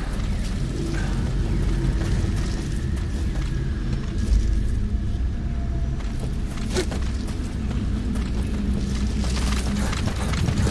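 Footsteps crunch through dry grass and brush.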